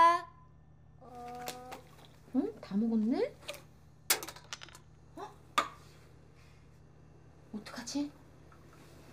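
A young girl speaks in a small voice nearby.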